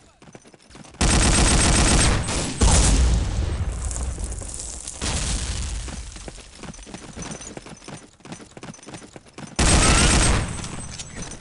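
A submachine gun fires rapid bursts.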